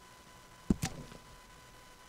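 Paper rustles as a letter is handled.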